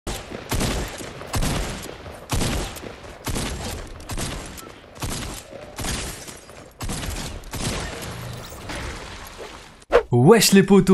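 Gunshots fire in quick repeated bursts.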